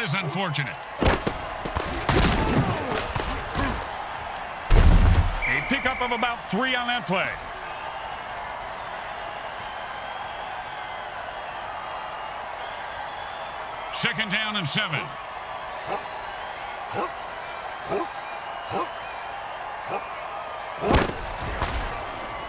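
Armoured players crash together with heavy thuds.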